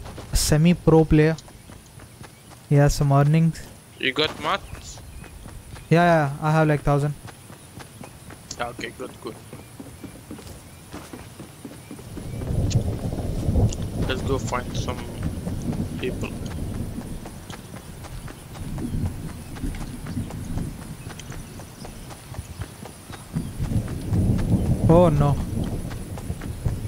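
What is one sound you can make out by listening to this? Footsteps run quickly over grass and wooden planks.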